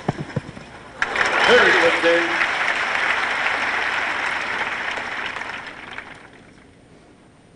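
A crowd applauds outdoors, then the clapping fades.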